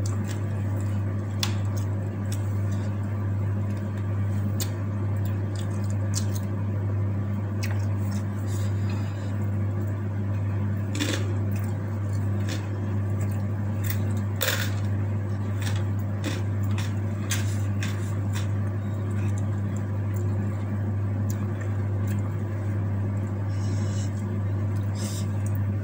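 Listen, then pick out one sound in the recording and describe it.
Fingers tap and scrape on a wooden plate.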